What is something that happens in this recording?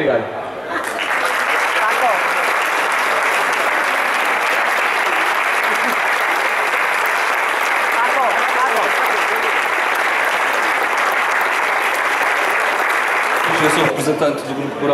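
A crowd applauds loudly and steadily outdoors.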